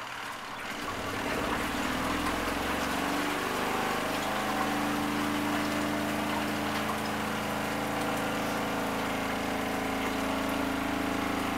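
A small washing machine hums and churns steadily.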